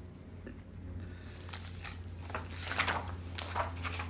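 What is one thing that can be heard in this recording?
Pages of a book rustle as they turn.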